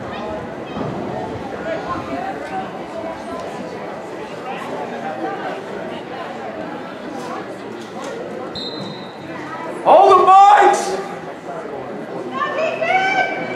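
Young players and spectators chatter and call out outdoors.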